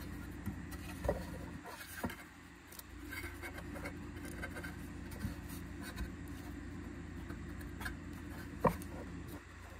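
A plastic cover knocks softly as it is handled.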